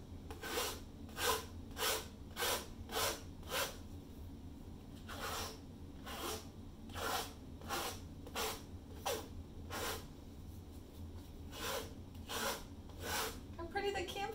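A tool scrapes across a wet painted surface in quick, repeated strokes.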